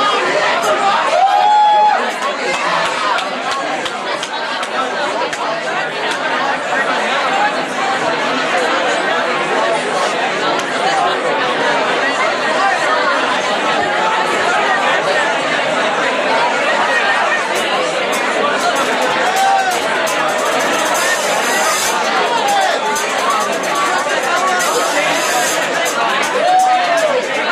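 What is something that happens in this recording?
Drums are played.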